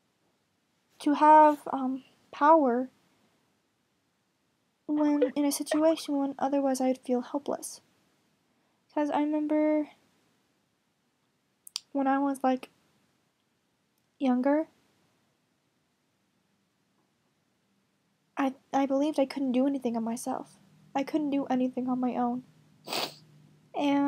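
A teenage girl talks calmly and close up, in short bursts with pauses.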